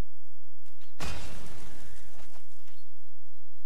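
A digital game effect whooshes as a card is played.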